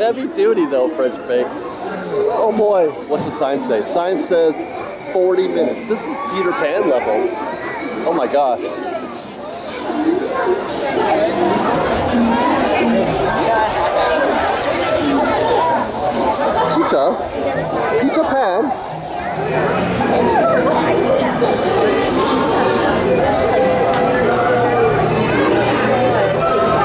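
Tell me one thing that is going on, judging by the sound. A crowd chatters all around outdoors.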